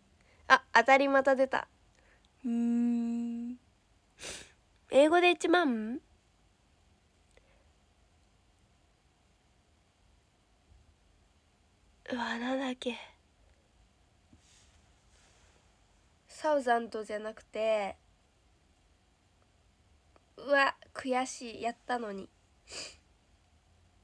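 A young woman talks softly and playfully close to a microphone, in short bursts with pauses.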